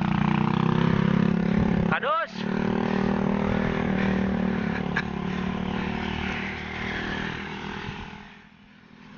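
A motorbike engine drones close by.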